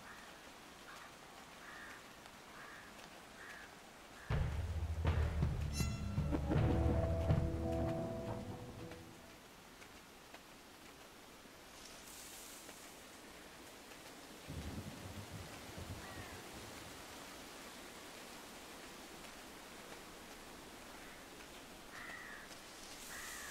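A small animal's paws patter quickly over the ground.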